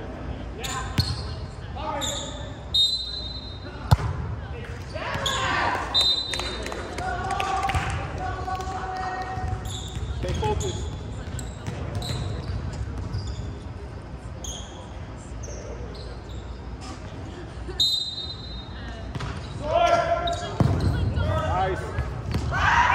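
A volleyball thuds off hands and arms.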